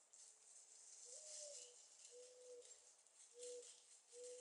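A male turkey makes short, low, humming calls.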